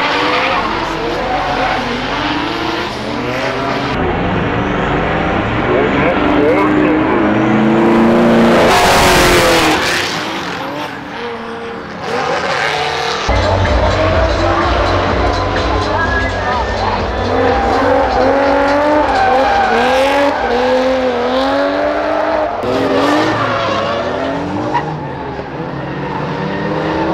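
Tyres squeal and hiss as cars slide.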